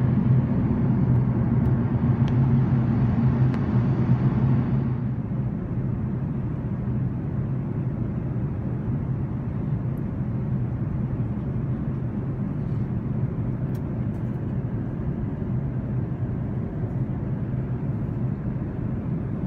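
The cabin of a four-engine jet airliner roars steadily at cruise, louder beside the window.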